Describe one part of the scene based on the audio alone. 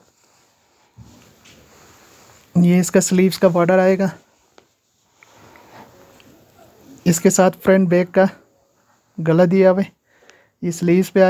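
Cloth rustles as it is unfolded and spread out.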